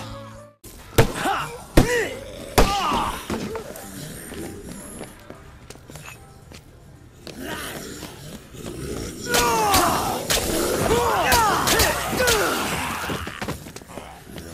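Fists punch and thump against bodies in sharp blows.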